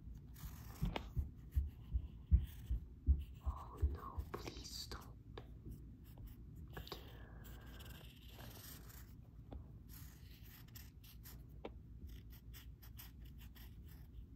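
A marker scratches softly on a paper towel.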